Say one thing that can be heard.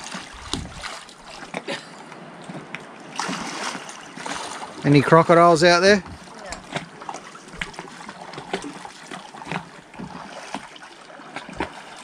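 A paddle splashes in calm water.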